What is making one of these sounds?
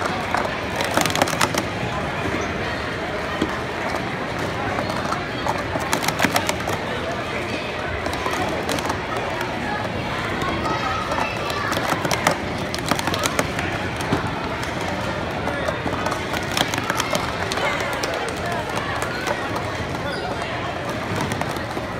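Plastic cups clatter rapidly as they are stacked and unstacked on a table.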